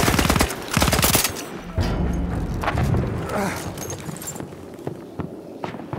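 Explosions boom nearby.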